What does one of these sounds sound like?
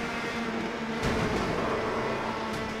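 Racing cars crash and scrape against each other.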